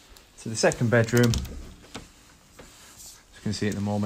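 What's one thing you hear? A door handle clicks as a door is pushed open.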